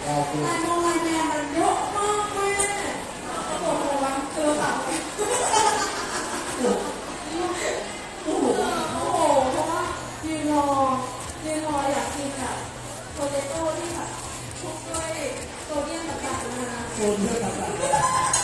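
A crowd chatters and cheers nearby.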